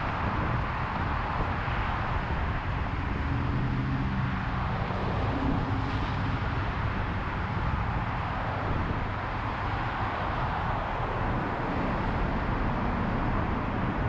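Cars pass close by with a rushing whoosh.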